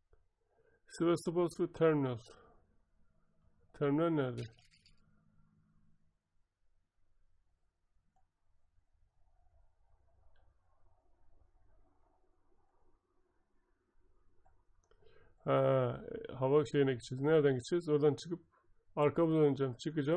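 A man talks calmly into a headset microphone, close and clear.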